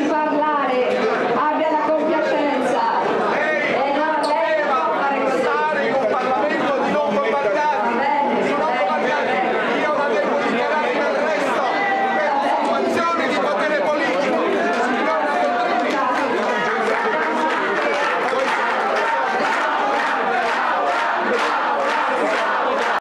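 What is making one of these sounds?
A dense crowd of men and women talk and shout all at once close by.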